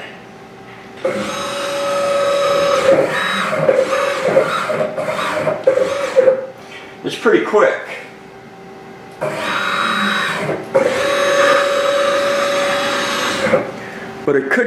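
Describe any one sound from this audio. A machine's motors whir as the tool slides move back and forth.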